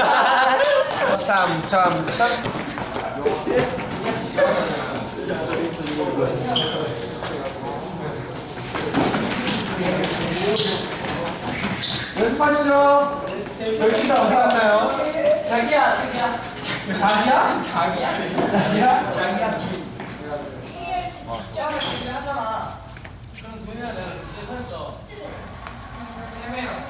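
A teenage boy talks close by.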